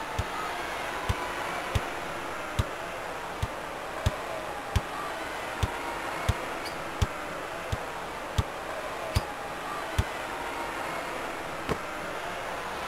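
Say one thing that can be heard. A basketball bounces on a hard floor in a steady rhythm.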